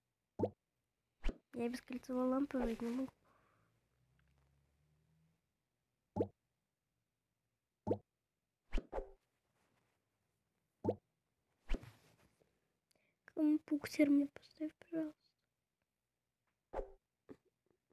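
Short game tones blip as items are tapped and placed.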